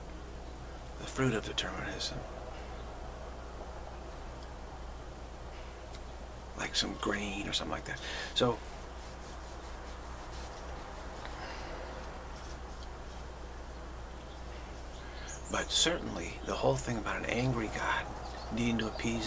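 A middle-aged man speaks calmly and slowly, close to the microphone, with long pauses.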